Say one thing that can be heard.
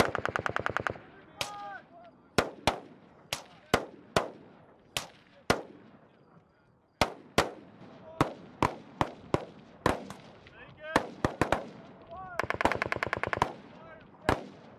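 Bursts of rapid gunfire rattle.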